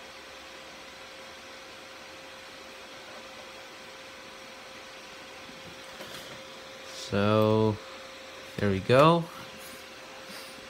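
A computer fan hums steadily.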